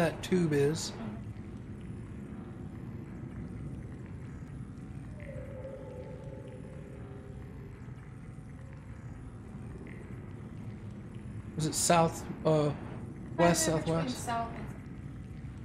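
A man speaks casually, close to a microphone, in short bursts.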